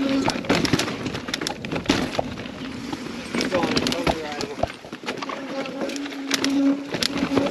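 A mountain bike's chain and frame rattle over bumps.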